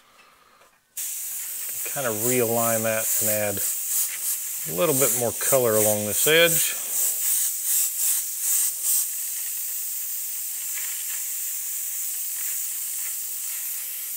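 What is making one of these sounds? An airbrush hisses steadily as it sprays paint.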